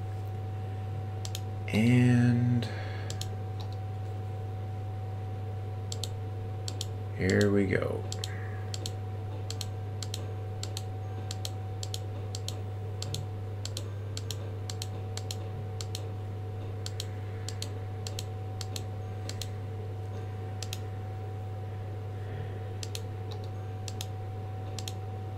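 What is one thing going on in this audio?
Soft game interface clicks tick again and again.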